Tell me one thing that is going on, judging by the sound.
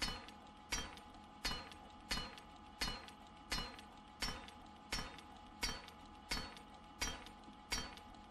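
A stone axe strikes a metal safe door with regular ringing clanks.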